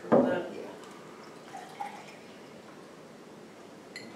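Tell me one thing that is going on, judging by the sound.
Water pours into a plastic bucket.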